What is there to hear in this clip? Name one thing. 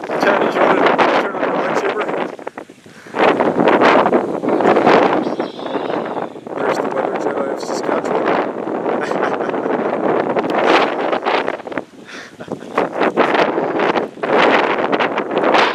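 Strong wind gusts loudly outdoors, buffeting against the microphone.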